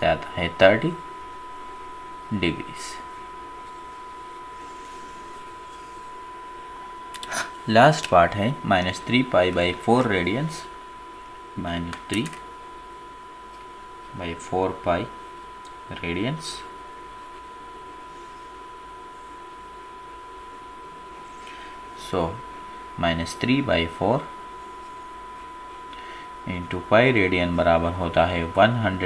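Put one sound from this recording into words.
A marker squeaks and scratches across paper.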